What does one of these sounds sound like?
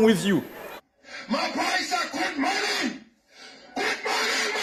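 An elderly man shouts with animation into a microphone.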